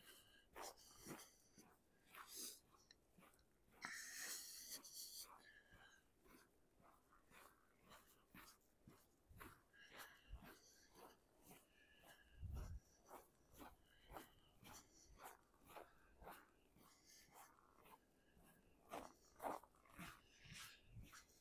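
Footsteps crunch steadily on packed snow.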